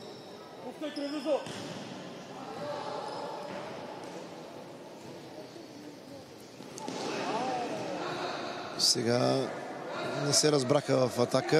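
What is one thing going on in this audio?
A ball is kicked with dull thuds on a hard indoor court.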